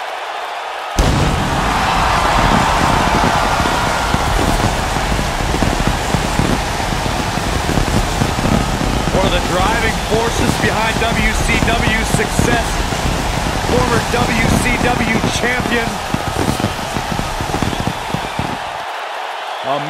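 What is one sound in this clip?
Sparkler fountains hiss and crackle loudly.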